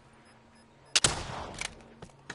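A heavy gun fires a loud burst.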